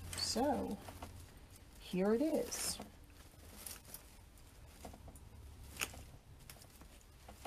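Ribbon and greenery rustle and crinkle as hands handle them.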